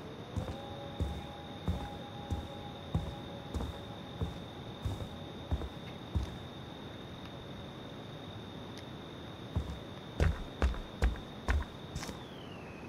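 Heavy footsteps thud slowly on a wooden floor.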